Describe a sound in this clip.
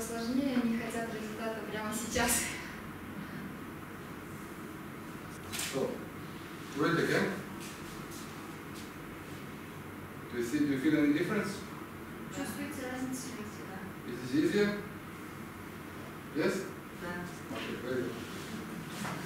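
A man speaks calmly, heard from a short distance.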